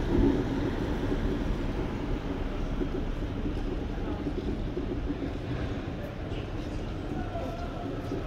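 Wind rumbles steadily while riding along a street outdoors.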